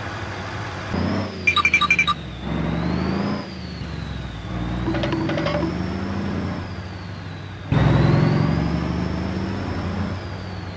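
A heavy truck engine rumbles as the truck drives by.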